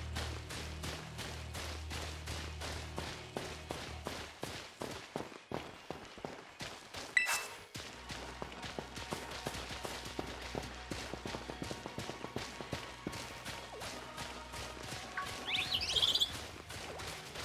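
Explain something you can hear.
Quick footsteps patter steadily as a figure runs over grass and stone.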